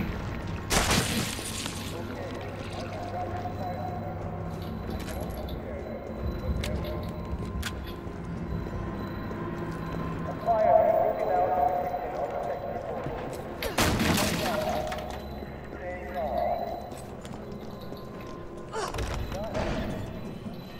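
Footsteps walk over a hard floor.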